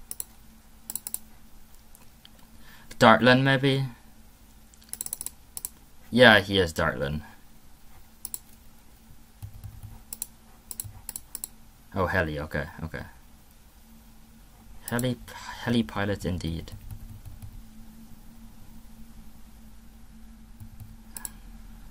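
Short electronic game pops and clicks sound now and then.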